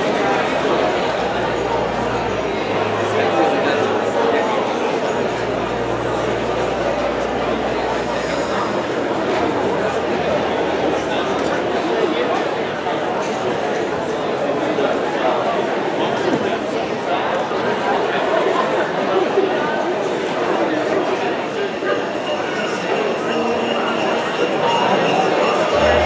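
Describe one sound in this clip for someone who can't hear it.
A band plays music in a large echoing hall.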